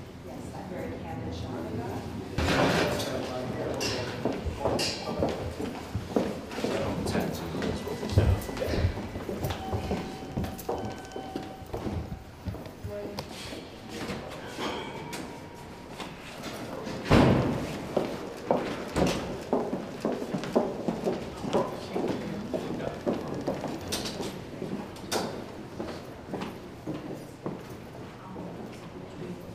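Several men and women talk over one another nearby in a busy indoor hallway.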